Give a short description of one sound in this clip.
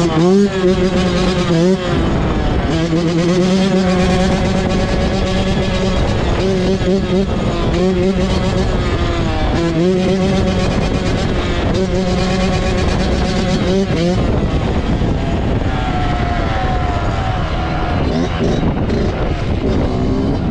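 A dirt bike engine revs loudly up and down close by.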